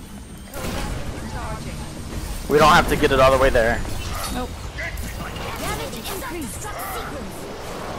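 A crackling energy beam fires in bursts.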